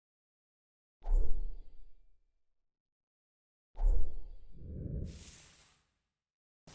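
A deep whooshing boom sounds twice.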